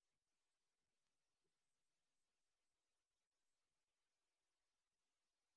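Water from a small fountain splashes steadily into a pool.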